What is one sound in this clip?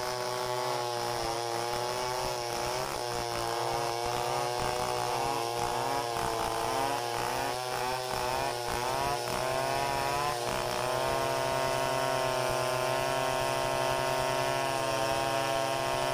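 A second chainsaw revs and whines close by.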